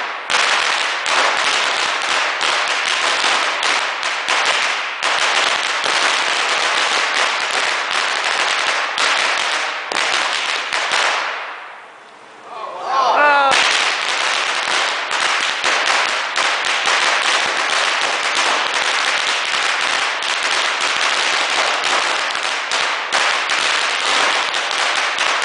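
A long string of firecrackers crackles and bangs rapidly and loudly outdoors.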